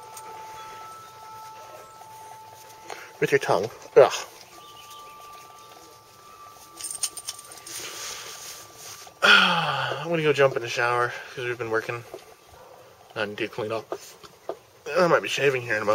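A dog pants softly.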